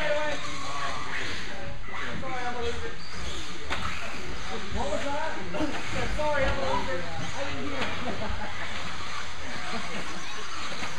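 Small electric motors whine as model cars race over dirt.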